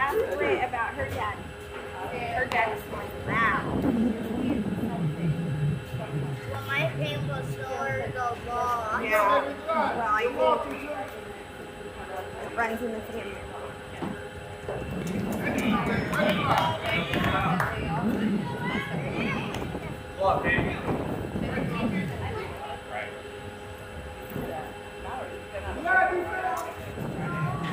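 Boys shout and chatter outdoors.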